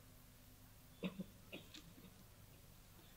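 A man speaks briefly and calmly into a microphone.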